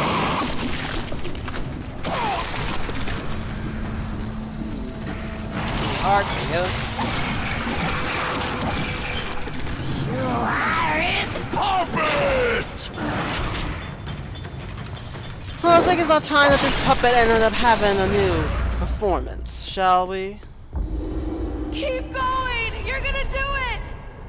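Game combat noises clash and boom.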